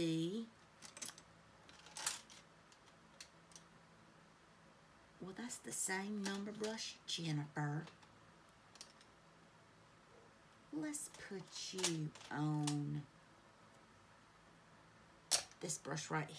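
A middle-aged woman talks calmly and close to a microphone, in short bursts.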